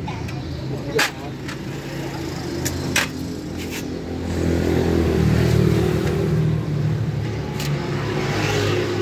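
Small metal parts click and clink against each other.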